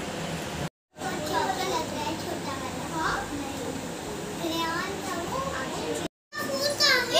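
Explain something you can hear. Young girls talk and chatter nearby.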